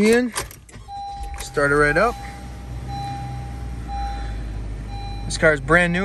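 A car's dashboard chime beeps steadily.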